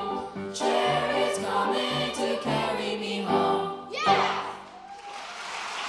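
A piano plays along with the choir.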